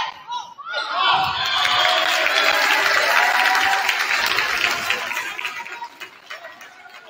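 A crowd cheers and applauds in an echoing gym.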